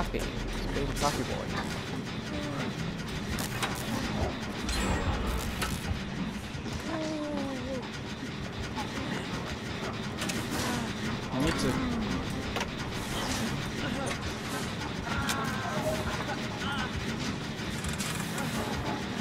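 Machinery clanks and rattles.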